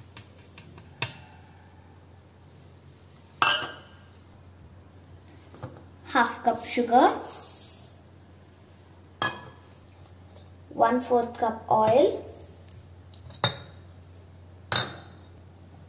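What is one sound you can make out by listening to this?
A metal bowl clinks against a metal jar.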